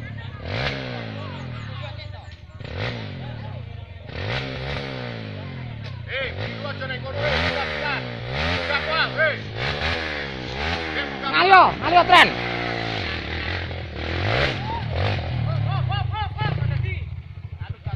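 Dirt bike engines rev and whine up and down nearby, outdoors.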